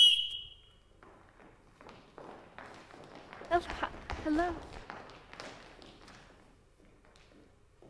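Children march with quick footsteps across a wooden stage.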